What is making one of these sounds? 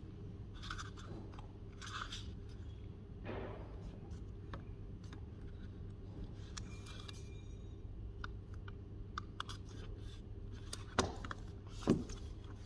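Paper pages rustle as a book's pages are flipped.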